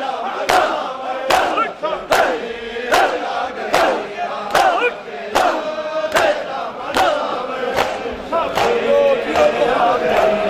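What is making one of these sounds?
A large crowd beats their chests in a steady, slow rhythm.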